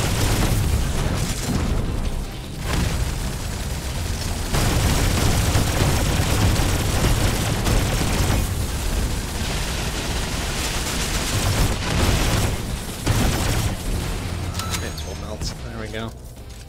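Rapid gunfire blasts loudly and continuously.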